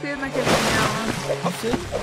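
Water splashes as something moves through a shallow pool.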